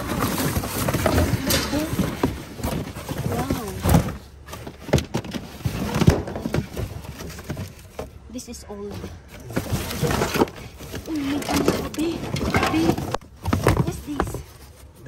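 Cardboard boxes rustle and scrape as they are moved about.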